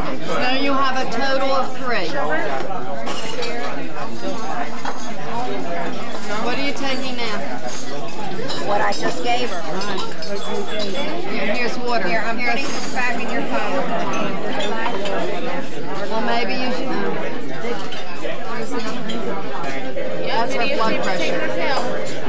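A crowd murmurs and chatters in a busy, echoing room.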